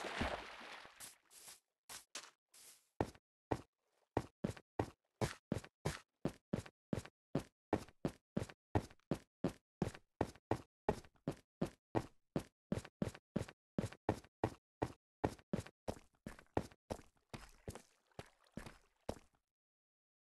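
Blocks of dirt and stone break one after another with quick, rapid thuds.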